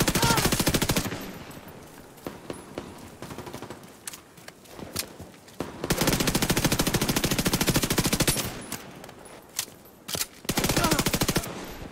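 An automatic rifle fires rapid bursts of shots.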